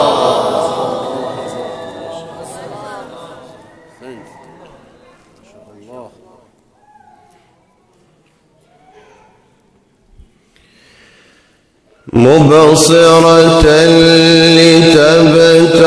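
A young man chants melodically into a microphone, amplified and echoing in a large hall.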